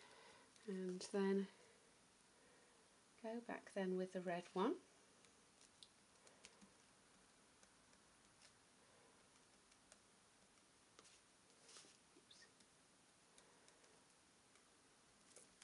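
A glue pen taps and scratches softly on paper.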